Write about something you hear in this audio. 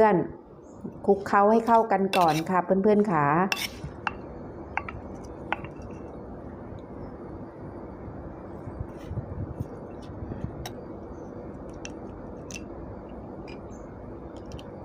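A metal spoon clinks and scrapes against a stone mortar.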